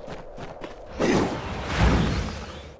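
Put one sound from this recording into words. A magic blast bursts with a loud whoosh.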